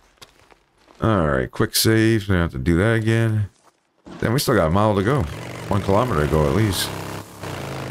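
A motorcycle engine starts and revs loudly.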